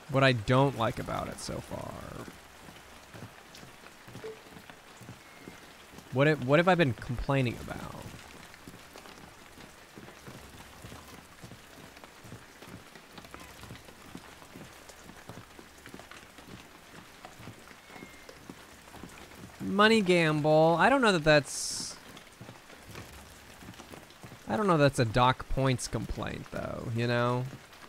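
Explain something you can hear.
A man talks casually into a close microphone in short bursts.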